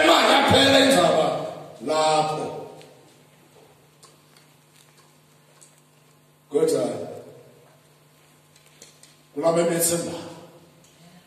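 A middle-aged man preaches loudly in bursts through a microphone, echoing in a large hall.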